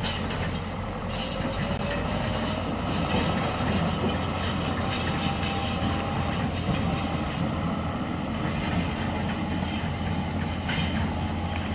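Water splashes around truck wheels.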